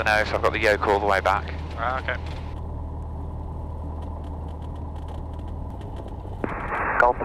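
A man speaks calmly through a headset intercom.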